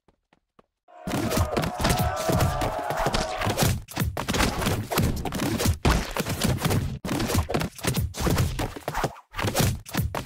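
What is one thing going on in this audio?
Loud game hits and splats thud rapidly.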